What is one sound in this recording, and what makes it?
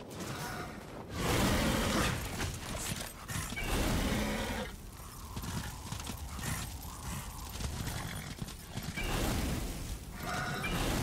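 Hooves gallop rapidly over sand.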